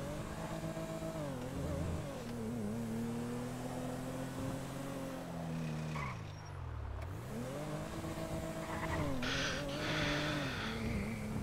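A car engine hums and revs up and down as the car drives.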